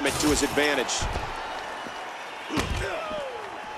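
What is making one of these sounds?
Heavy blows land with dull thuds.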